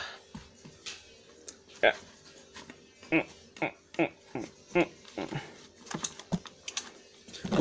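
A knife crunches through a hard pumpkin rind in short, repeated strokes.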